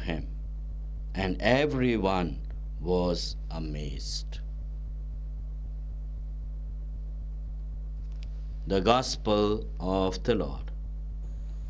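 A man speaks slowly and solemnly into a microphone, with pauses.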